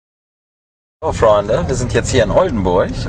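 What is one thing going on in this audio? A man talks with animation close by inside a car.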